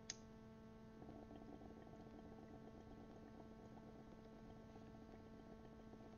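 Water bubbles steadily in a bong.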